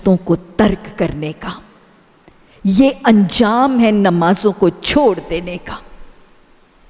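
A woman speaks with animation into a nearby microphone.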